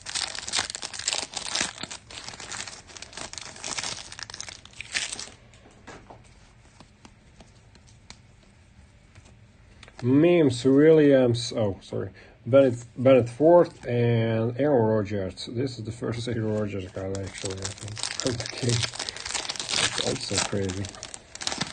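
Foil wrappers crinkle and rustle as packs are torn open.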